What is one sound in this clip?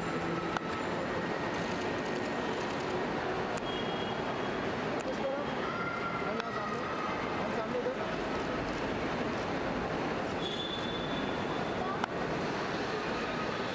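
High heels tap on a hard floor as a woman walks.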